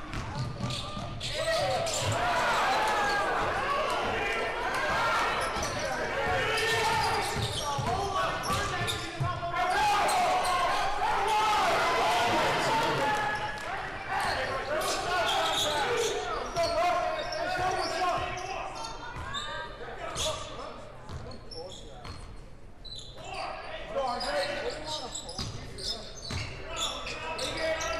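Sneakers squeak and thump on a wooden court.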